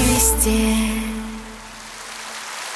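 A woman sings a final held note through a microphone in a large hall.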